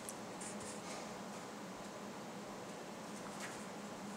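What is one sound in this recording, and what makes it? Paper rustles in a woman's hands.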